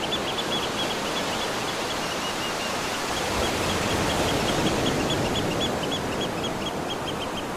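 Water splashes as a child plays in the surf.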